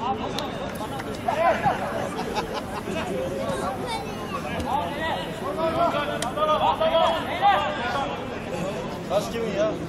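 Men shout and call out to each other across an open outdoor field.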